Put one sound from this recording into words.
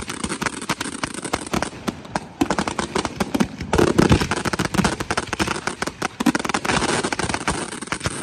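Fireworks launch with deep booming thuds.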